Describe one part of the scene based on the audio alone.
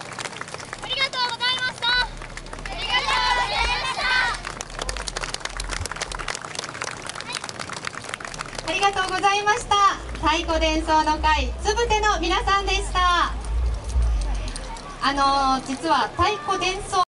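A group of young dancers shout together in loud calls outdoors.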